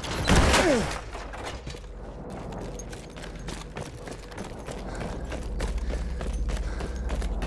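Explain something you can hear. Footsteps crunch on cobblestones outdoors.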